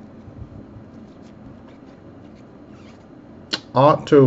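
Stiff cards slide and flick against one another.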